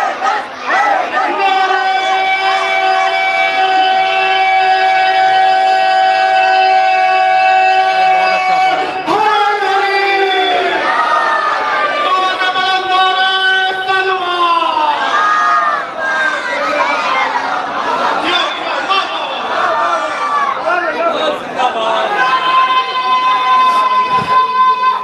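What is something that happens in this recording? A young man recites loudly into a microphone, holding long drawn-out notes.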